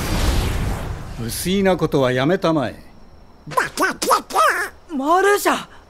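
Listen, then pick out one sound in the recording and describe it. A man speaks calmly and coolly.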